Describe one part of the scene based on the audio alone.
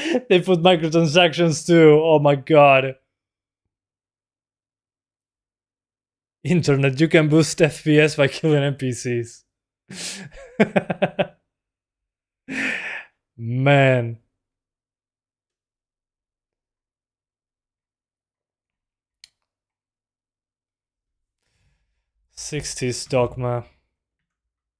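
A young man talks and laughs close to a microphone, with animation.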